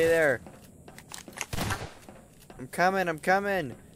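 A shotgun shell is loaded with a metallic click.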